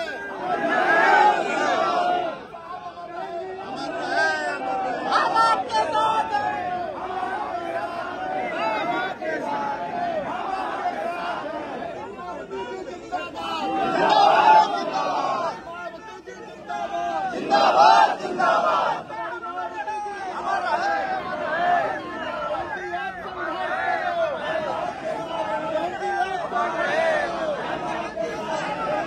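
Men in a crowd talk and call out nearby.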